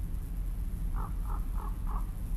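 Birds caw a few times in the distance.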